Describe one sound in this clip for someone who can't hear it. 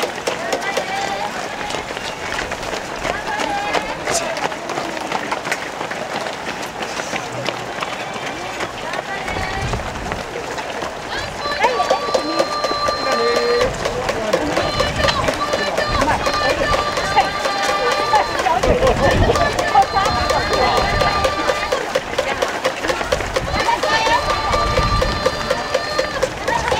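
A crowd of spectators cheers and chatters nearby.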